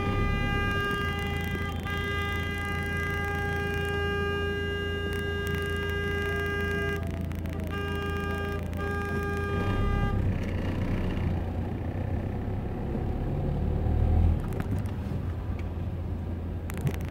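A car engine hums steadily nearby.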